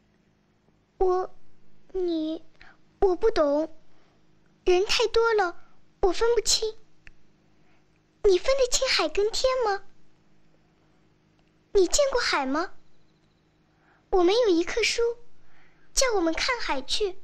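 A young girl speaks earnestly, close by.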